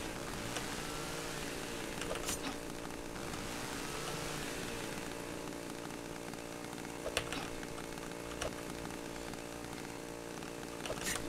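A chainsaw engine drones steadily.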